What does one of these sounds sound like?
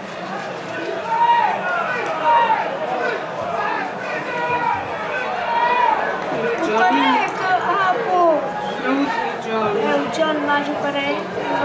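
Men shout excitedly nearby.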